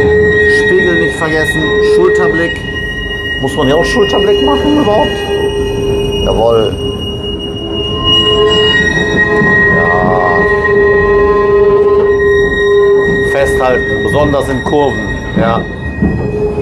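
A tram rumbles and rattles along rails.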